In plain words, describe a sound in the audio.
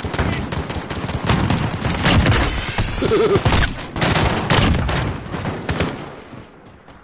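Gunshots crack loudly in rapid bursts.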